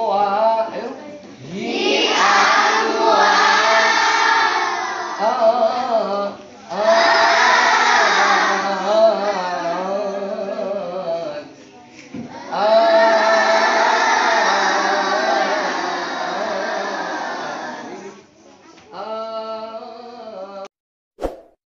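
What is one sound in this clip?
Many children chant together loudly in an echoing room.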